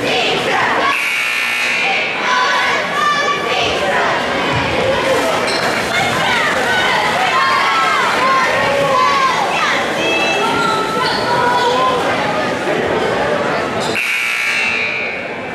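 A referee blows a sharp whistle.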